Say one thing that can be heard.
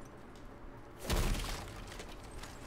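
A heavy weapon strikes with a deep, booming thud.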